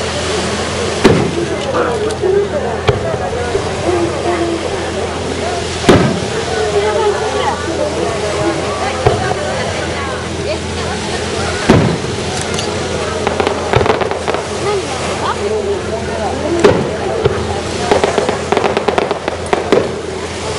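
Fireworks burst with sharp bangs and crackles.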